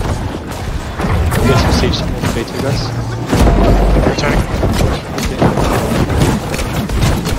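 Swords and axes clash and strike in a fast fight.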